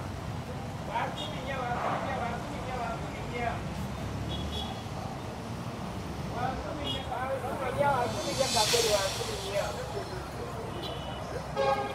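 Men and women chat nearby.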